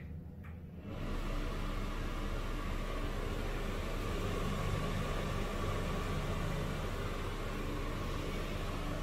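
An exhaust fan whirs steadily.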